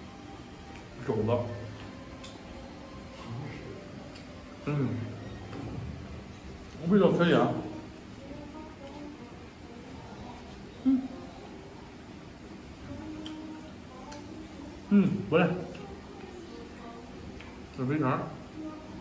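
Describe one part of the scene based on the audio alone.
A man speaks in short, relaxed remarks close by.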